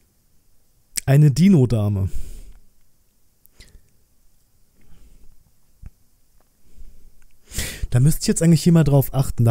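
A man speaks close to a microphone in short bursts.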